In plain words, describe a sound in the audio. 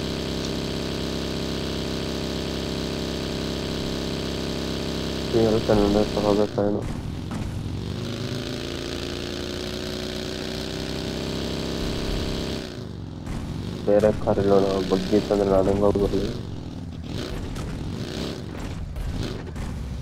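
A small buggy engine drones and revs steadily.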